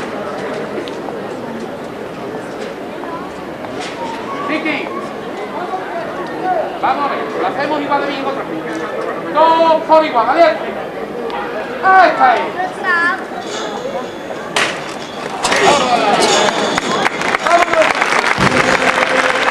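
A crowd of men and women murmurs and chatters outdoors.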